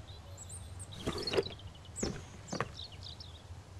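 A metal filing cabinet drawer slides and clunks.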